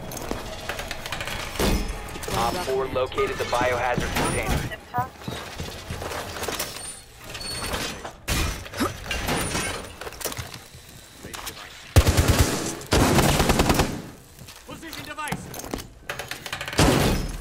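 A heavy metal panel is set down with a clank.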